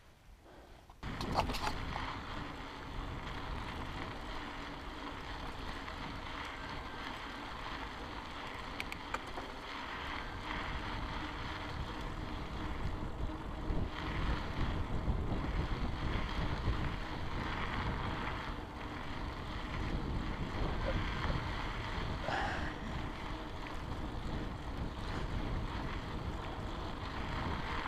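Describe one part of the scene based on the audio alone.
Wind buffets loudly against the microphone.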